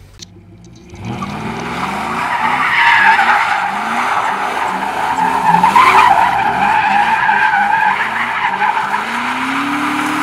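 A truck engine roars and revs loudly.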